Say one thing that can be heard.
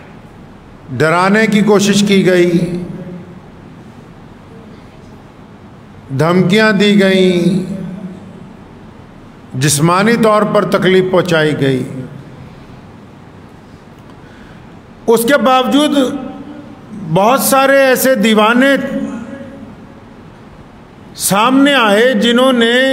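A man speaks slowly and with emphasis into a microphone, in short phrases with pauses, in an echoing room.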